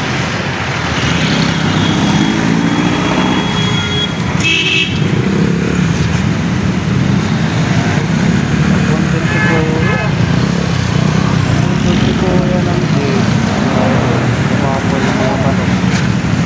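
Motorcycle engines idle and rumble close by.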